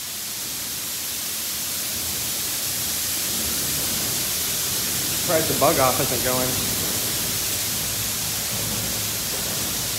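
Water sprays hard and steadily in an echoing space.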